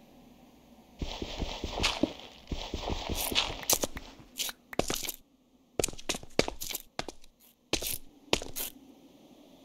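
Blocks crack and break with sharp digging sounds.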